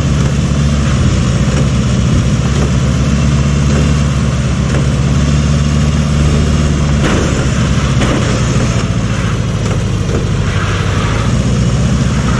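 Tyres hiss over a snowy road.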